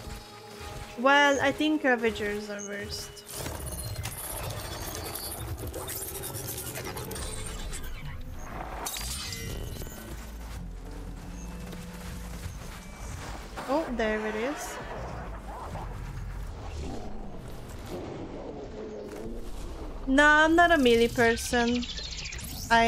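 A young woman speaks with animation through a close microphone.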